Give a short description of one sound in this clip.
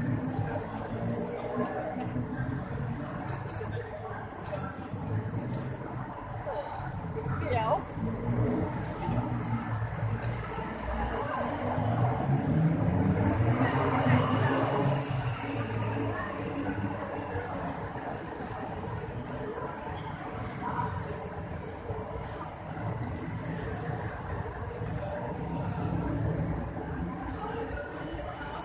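Traffic rumbles and hisses past nearby outdoors.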